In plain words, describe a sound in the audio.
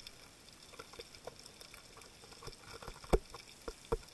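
A metal tool knocks and scrapes against rock underwater.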